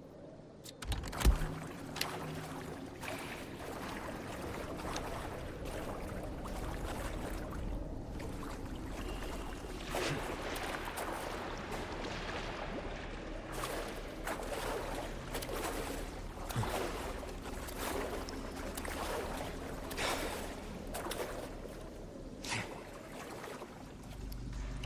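Footsteps crunch on rocky ground in an echoing cave.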